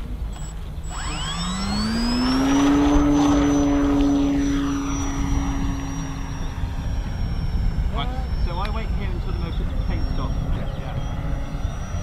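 A small model plane engine revs up to a high buzzing whine and drones on overhead.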